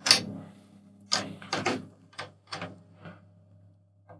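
Fingers tap lightly on a drum head.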